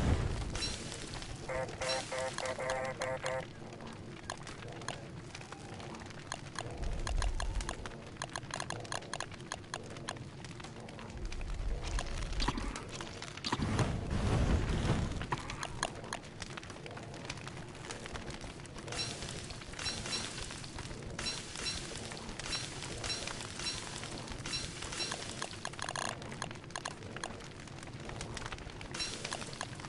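A campfire crackles steadily.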